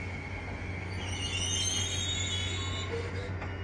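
Train brakes squeal faintly.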